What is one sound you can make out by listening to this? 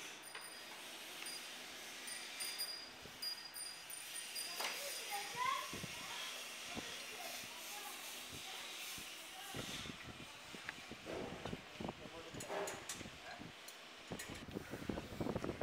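Metal tools clink and scrape against an engine block.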